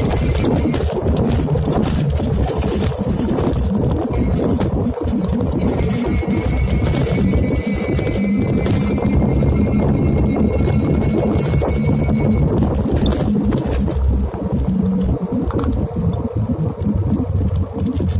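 A motorbike engine hums steadily as it moves along.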